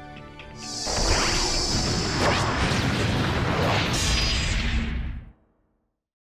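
A powerful energy blast roars and crackles.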